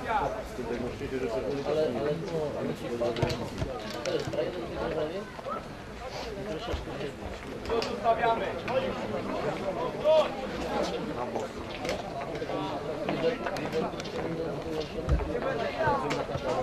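Boys shout and call out to each other across an open field.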